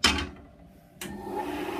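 A band saw motor starts up and whirs.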